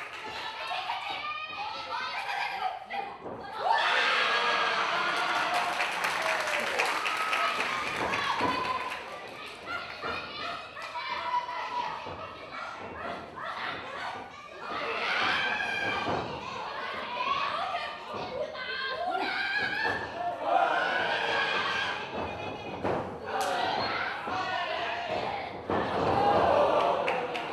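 Young women shout as they wrestle.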